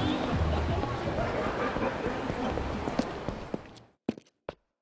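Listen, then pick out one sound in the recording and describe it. Footsteps hurry over pavement.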